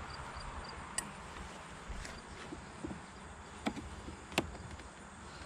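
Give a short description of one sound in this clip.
A metal hive tool clicks and scrapes against a wooden box.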